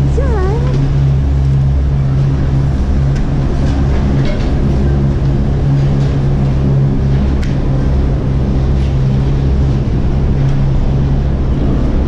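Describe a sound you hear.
Ski boots clomp on a metal grating.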